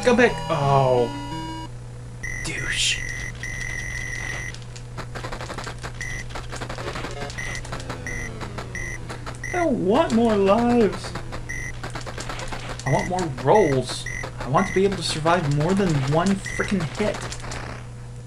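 Chirpy electronic game music warbles up and down.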